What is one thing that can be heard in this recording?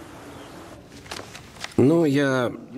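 Paper pages rustle as they are flipped.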